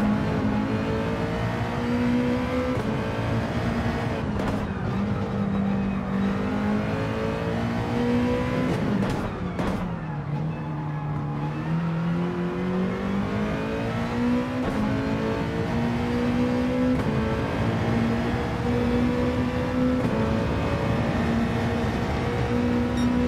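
A racing car engine roars loudly, revving up through the gears and dropping in pitch on shifts and braking.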